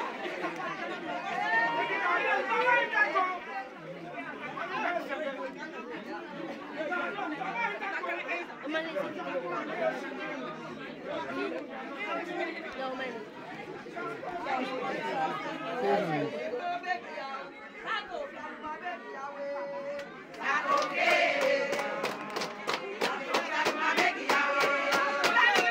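A crowd of women talk and call out loudly close by.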